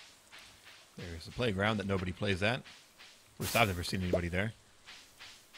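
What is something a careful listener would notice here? A man speaks into a microphone up close.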